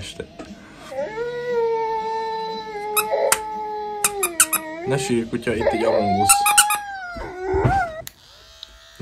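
A dog howls in long, wavering notes.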